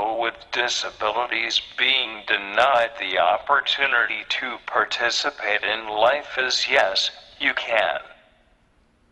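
A man speaks through a microphone with feeling in a large hall.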